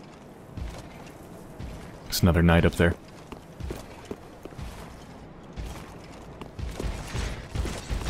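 Footsteps tread on stone steps.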